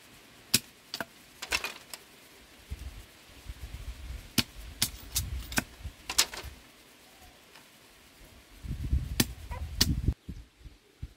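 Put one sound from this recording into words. A knife scrapes and shaves bamboo strips.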